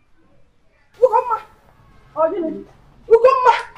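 A woman pleads in a loud, tearful voice.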